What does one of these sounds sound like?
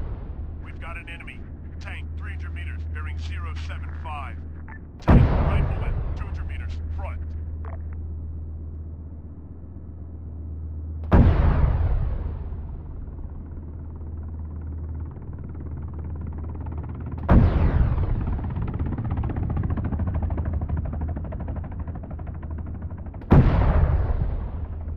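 A tank engine rumbles low and steady.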